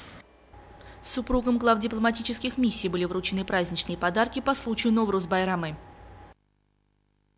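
A woman speaks nearby with animation.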